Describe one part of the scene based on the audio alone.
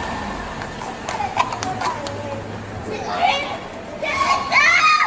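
A young woman shouts and screams.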